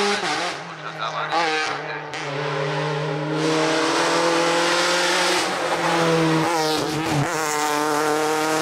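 A racing car engine revs hard, its pitch rising and dropping sharply between gear changes.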